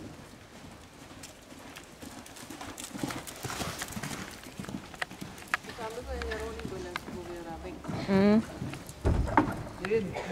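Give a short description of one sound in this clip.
Horse hooves thud on soft sand at a canter in a large echoing hall.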